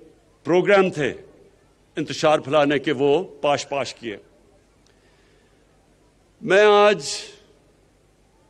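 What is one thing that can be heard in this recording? A man speaks forcefully through a microphone and loudspeakers.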